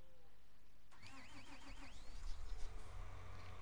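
A tractor engine idles and revs.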